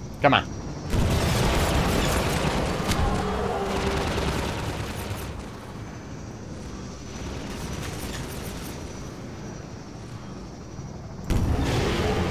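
A rocket whooshes as it is fired.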